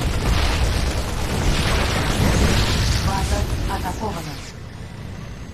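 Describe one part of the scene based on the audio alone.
Guns fire rapidly in a battle.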